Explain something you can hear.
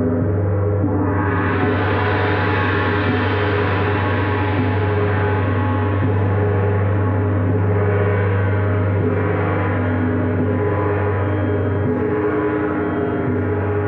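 A large gong is struck with a soft mallet and swells into a long, shimmering roar that slowly fades.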